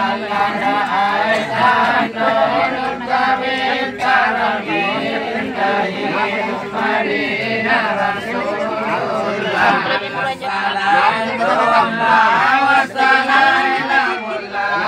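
A group of men chant together in unison, close by.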